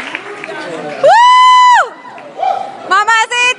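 An audience of young people cheers and screams loudly.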